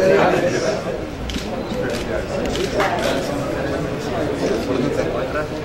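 A crowd of men and women chatters nearby in a room.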